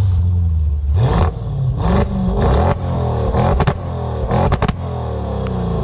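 A car exhaust pops and crackles.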